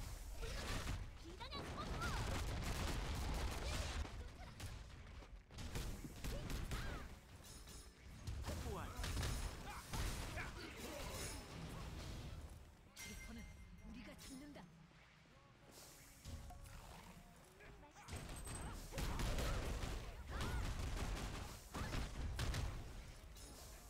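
Gunfire and explosions crash loudly and repeatedly.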